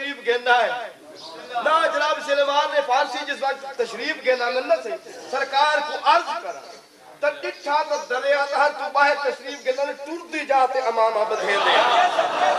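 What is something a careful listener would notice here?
A man speaks forcefully through a microphone and loudspeakers.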